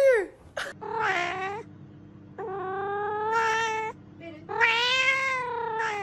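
A cat meows loudly and repeatedly in long, drawn-out cries.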